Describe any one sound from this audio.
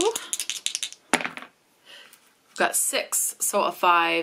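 A small die drops and rolls with a soft clatter.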